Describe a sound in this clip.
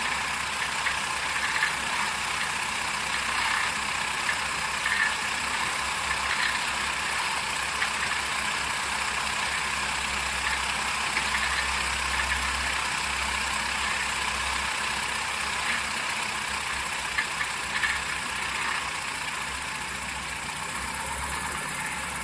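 A small plane's engine drones steadily, close by.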